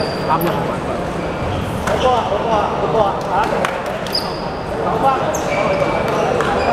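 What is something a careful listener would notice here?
Young men chat casually nearby in a large echoing hall.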